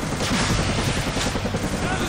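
Gunfire rings out nearby.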